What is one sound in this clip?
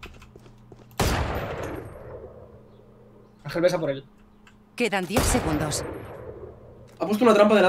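Gunshots ring out sharply and echo.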